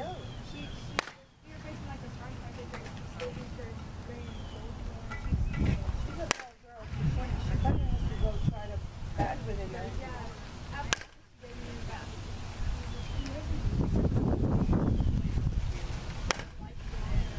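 A metal bat strikes a ball with a sharp ping, several times.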